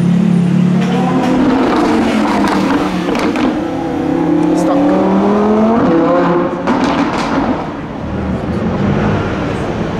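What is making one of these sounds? A sports car engine revs up hard and roars past.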